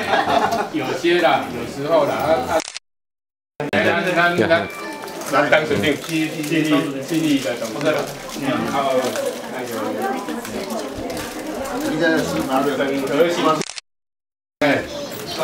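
Several adults talk and chatter nearby.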